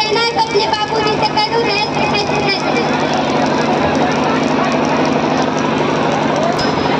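A young girl speaks through a microphone and loudspeaker.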